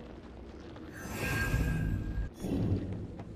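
Magic crackles and whooshes in a burst.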